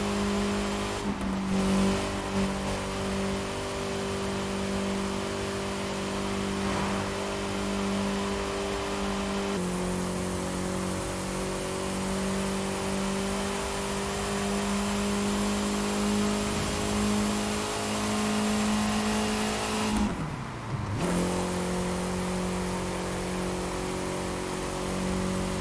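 A sports car engine drones steadily at high speed, with a brief drop in pitch during a gear change.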